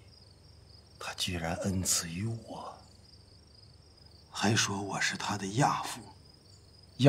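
An elderly man speaks slowly and sorrowfully, close by.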